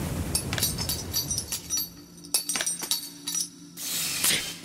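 Spinning tops whir and clash with sharp metallic clicks.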